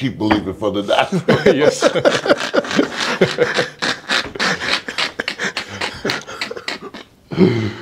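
Men laugh heartily together.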